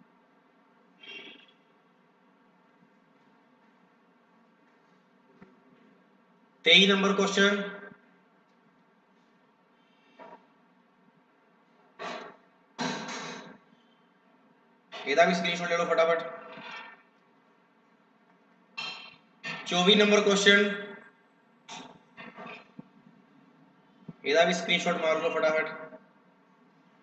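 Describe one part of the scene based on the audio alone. A young man speaks into a microphone in short, animated bursts with pauses between them.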